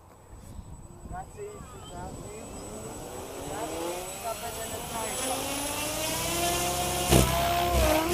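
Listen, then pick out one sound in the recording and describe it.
Small model helicopter motors whine and rise in pitch as they spin up.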